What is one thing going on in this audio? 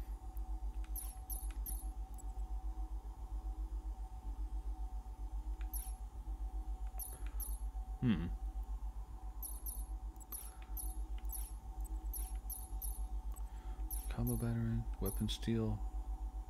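Short soft menu clicks tick each time a selection moves.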